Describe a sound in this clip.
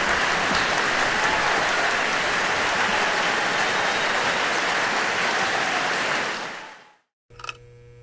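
A large audience applauds loudly in a large hall.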